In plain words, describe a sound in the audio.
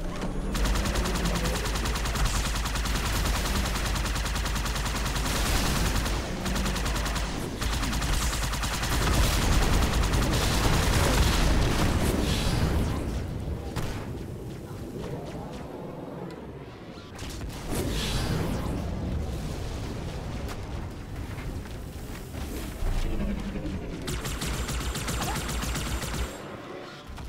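Plasma bolts fire in rapid bursts.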